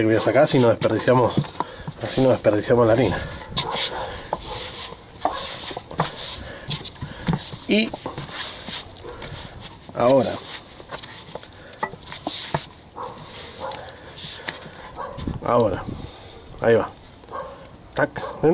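Hands knead soft dough in a metal bowl with soft squelching and thudding.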